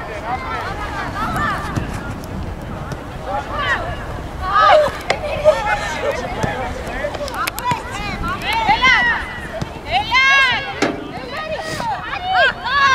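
Young women shout to each other in the distance outdoors.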